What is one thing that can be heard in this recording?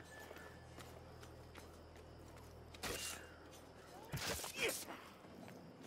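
A sword clangs against armour.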